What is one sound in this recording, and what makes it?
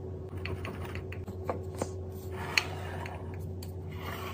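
A wooden lid clicks shut on a ceramic jar.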